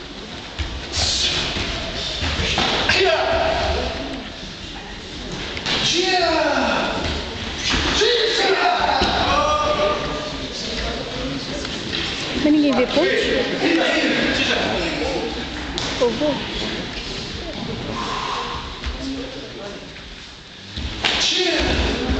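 Kicks smack against padded body protectors.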